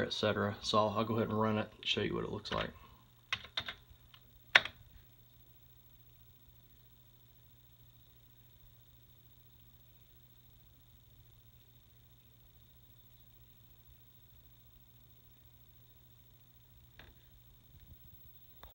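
An old monitor hums with a faint, steady high whine.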